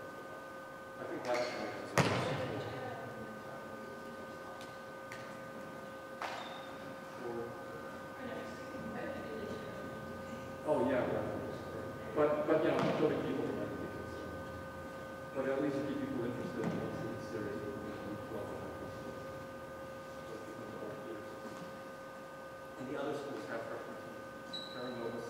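Young men call out to each other in the distance in a large echoing hall.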